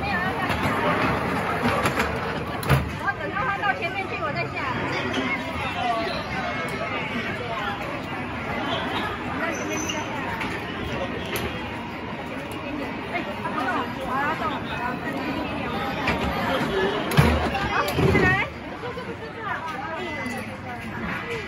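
A small girl babbles and squeals nearby.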